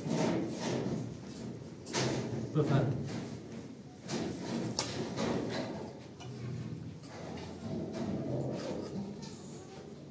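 Plates and cutlery clink softly.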